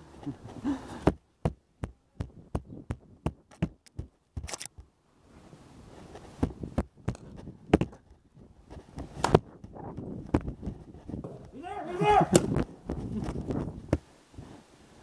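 Paintball guns fire in quick sharp pops.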